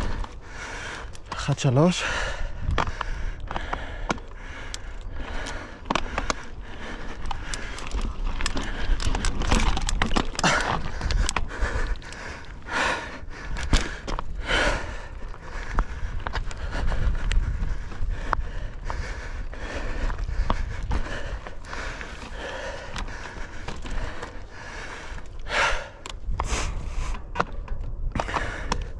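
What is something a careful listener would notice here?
A bike chain and frame rattle over bumps.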